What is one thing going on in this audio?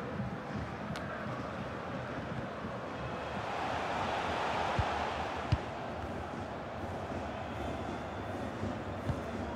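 A stadium crowd murmurs and swells.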